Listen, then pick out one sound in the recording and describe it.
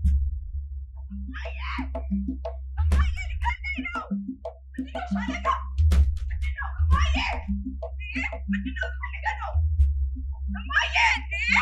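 A young woman shouts in distress, close by.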